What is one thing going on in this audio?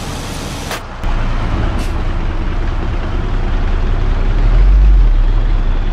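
A heavy truck engine rumbles low and strains.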